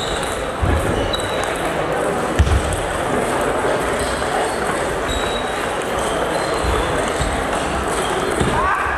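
A ball clicks back and forth on a table tennis table in an echoing hall.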